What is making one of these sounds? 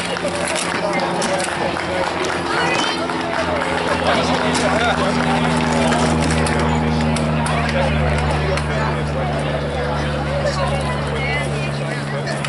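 A crowd chatters outdoors in the open air.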